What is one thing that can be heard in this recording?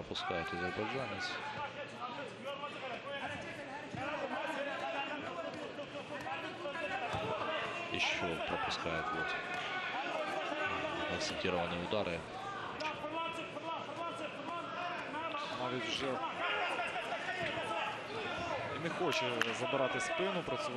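A crowd cheers and shouts in a large arena.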